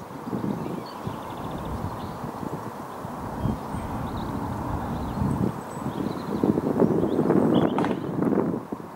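A horse's hooves clop slowly on a paved path.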